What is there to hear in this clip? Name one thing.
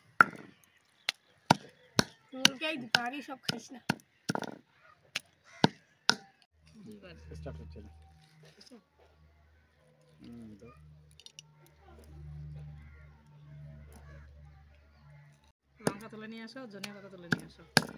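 A stone pestle pounds fruit on a stone slab with sharp knocks.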